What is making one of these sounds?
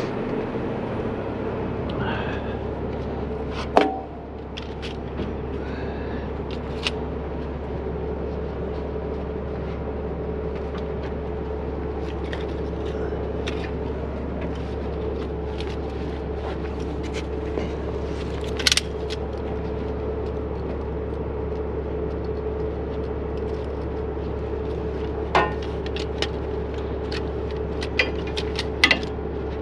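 A truck engine idles with a steady hum.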